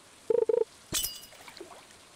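A sharp electronic chime rings.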